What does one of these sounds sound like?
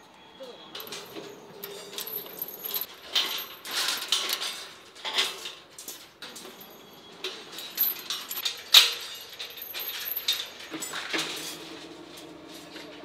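Metal wire clinks and rattles against steel bars.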